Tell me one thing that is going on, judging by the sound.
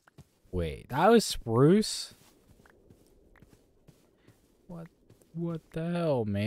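Footsteps rustle softly on grass.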